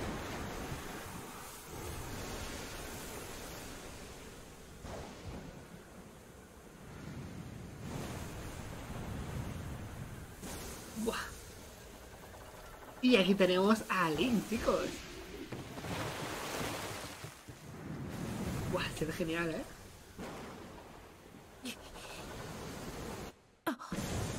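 Waves crash and roar in a storm.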